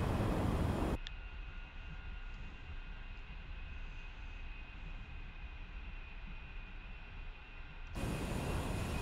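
A jet engine hums steadily, heard from inside a cockpit.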